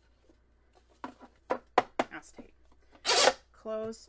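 A stack of cards taps sharply against a tabletop.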